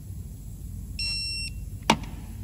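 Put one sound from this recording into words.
An electronic torque wrench beeps briefly.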